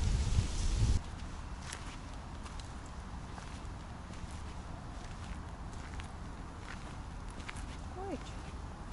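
Dry leaves rustle and crackle as small animals walk over them.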